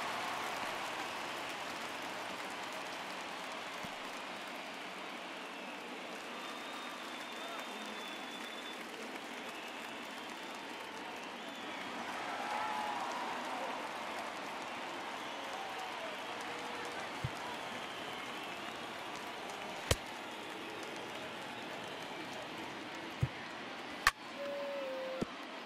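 A stadium crowd murmurs.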